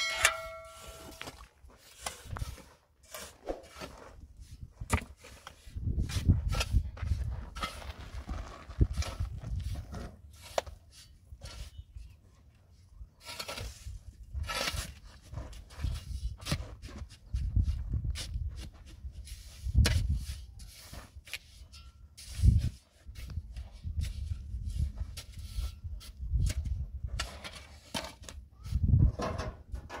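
Shovels scrape and scoop gravel and cement.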